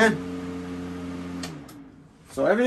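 A wall fan hums steadily.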